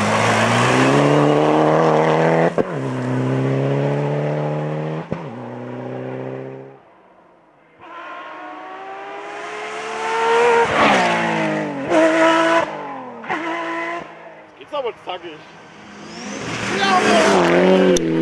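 Gravel sprays and rattles under a car's tyres.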